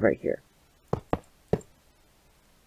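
A stone block is set down with a short, dull knock.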